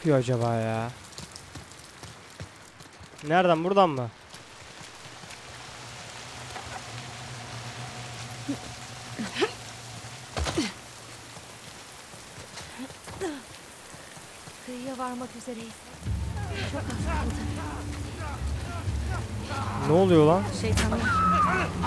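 A young woman speaks urgently nearby.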